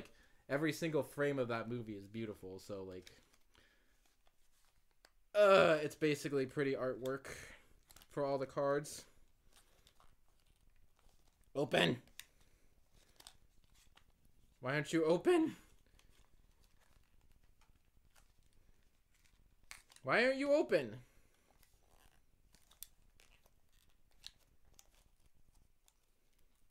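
Cardboard and foil packaging rustles in a young man's hands.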